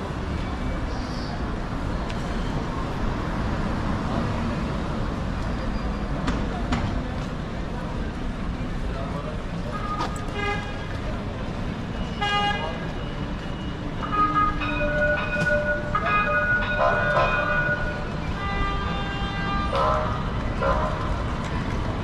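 Footsteps walk along a pavement.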